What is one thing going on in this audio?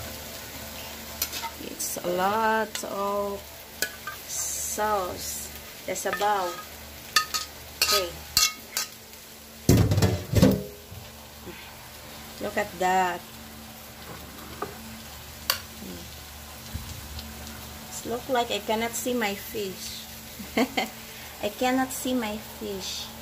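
A metal spoon clinks and scrapes against a bowl.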